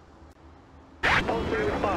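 A car engine hums.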